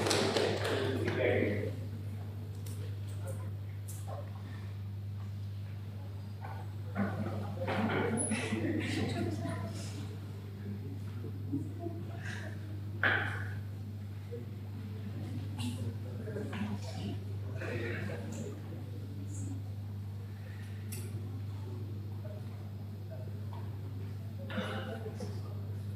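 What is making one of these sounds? A man speaks at a distance through a microphone in an echoing room.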